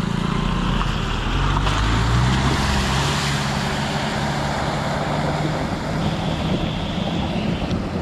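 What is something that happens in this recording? A car splashes through shallow water.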